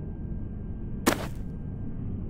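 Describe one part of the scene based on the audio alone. A body thumps onto the ground.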